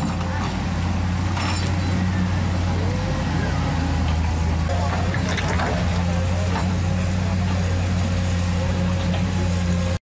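An excavator bucket scrapes and digs into wet mud.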